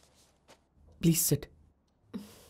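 A young man says a few words nearby.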